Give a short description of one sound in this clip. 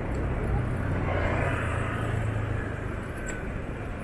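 A motorbike engine buzzes past close by.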